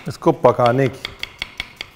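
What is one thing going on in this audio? A knife chops on a wooden board with quick, sharp taps.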